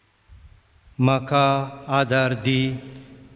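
A man sings loudly through a microphone in an echoing hall.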